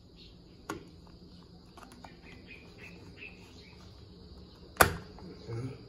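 A plastic part clicks and snaps as a hand works it loose.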